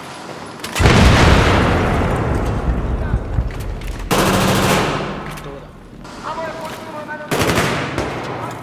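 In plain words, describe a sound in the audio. Loud gunfire and explosions boom and echo in bursts.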